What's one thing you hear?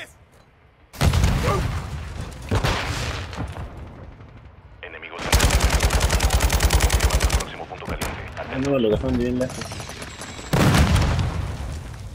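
Explosions boom loudly nearby.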